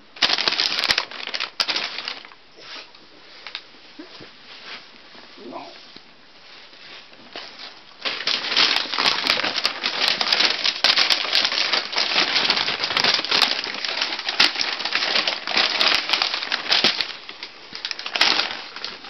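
A blanket rustles and crackles loudly close by.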